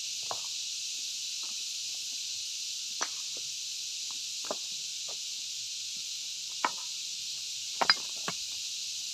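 A hammer strikes rock with sharp, scattered knocks.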